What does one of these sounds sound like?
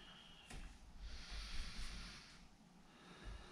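A woman breathes out slowly and audibly close by.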